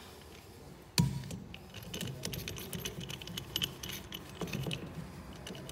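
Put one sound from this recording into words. A metal tool clanks and clicks against a pipe.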